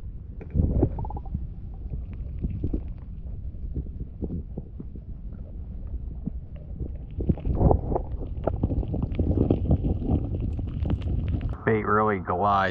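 Water rumbles dully, heard from underwater, with soft knocks.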